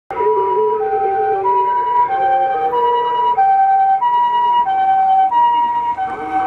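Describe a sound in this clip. An ambulance engine hums as the ambulance drives past.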